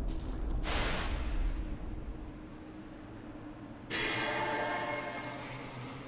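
Magic spell sound effects whoosh in short bursts.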